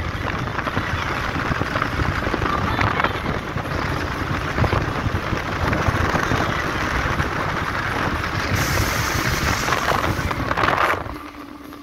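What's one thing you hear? Wind rushes loudly past a moving car.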